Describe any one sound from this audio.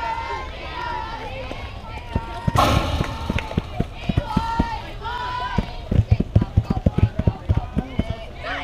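Young girls chant and cheer outdoors.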